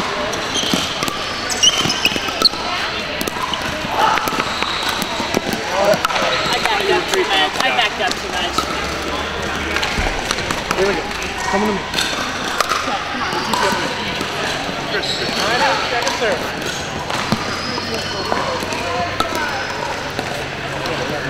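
Many voices chatter throughout a large echoing hall.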